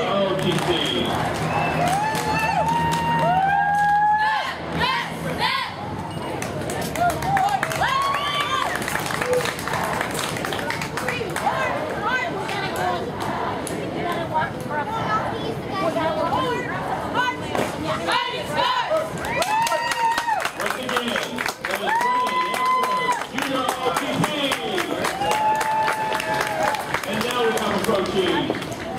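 A group of young cadets chants a marching cadence loudly in unison, outdoors.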